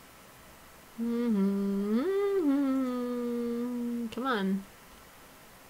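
A woman sings a few words along with a song.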